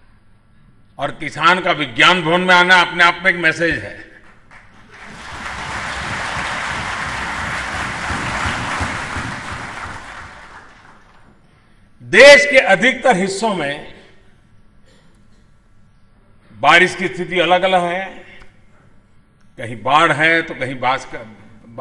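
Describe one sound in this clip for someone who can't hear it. An elderly man speaks with animation into a microphone in a large hall.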